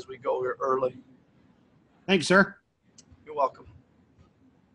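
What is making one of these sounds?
A man speaks calmly into a microphone in short phrases, heard as if over an online call.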